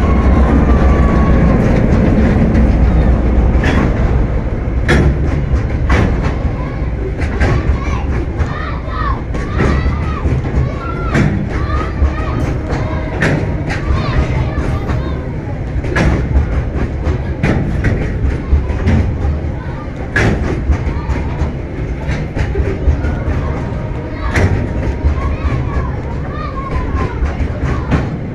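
Train wheels clank and knock over rail joints.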